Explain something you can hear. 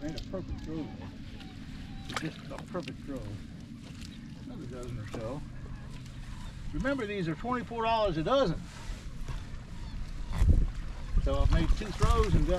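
An elderly man explains outdoors, talking close by.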